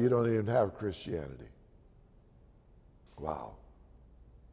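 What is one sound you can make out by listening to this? An elderly man speaks slowly and calmly through a microphone.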